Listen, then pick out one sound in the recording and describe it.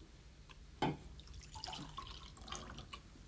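Coffee pours from a jug into a mug.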